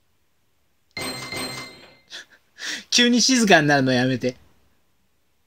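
Electronic video game jingles and chimes play as a score tallies up.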